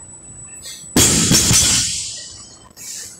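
A heavy loaded barbell crashes onto the floor and rattles.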